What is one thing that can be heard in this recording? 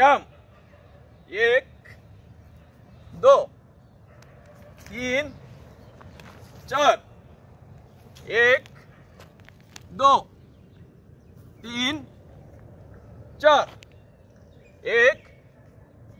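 A man calls out short counts at a steady pace, outdoors.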